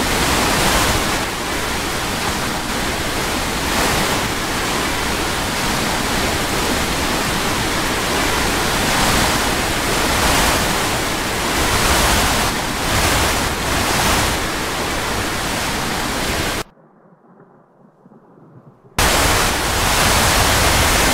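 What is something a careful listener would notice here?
Strong storm wind roars steadily.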